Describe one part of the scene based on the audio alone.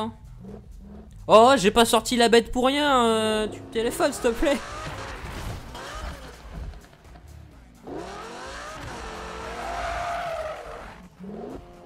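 Tyres screech as a car drifts around a corner.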